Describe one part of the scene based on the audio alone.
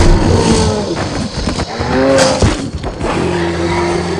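A heavy blow lands with a crash.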